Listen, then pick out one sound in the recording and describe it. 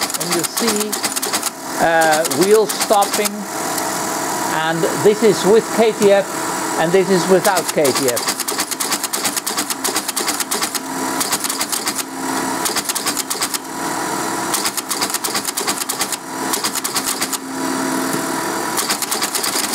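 An electromechanical machine clatters and clicks rapidly as its mechanism runs.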